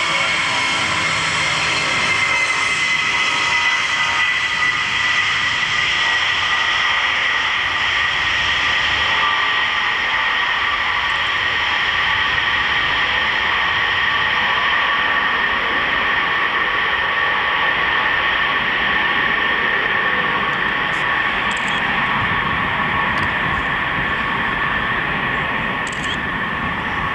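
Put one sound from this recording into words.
Jet engines roar loudly with a high, steady whine as a large plane speeds off.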